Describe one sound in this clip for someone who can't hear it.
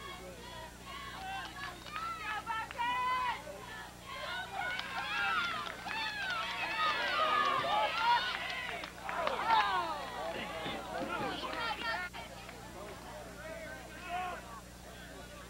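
A crowd of spectators and players cheers and shouts outdoors.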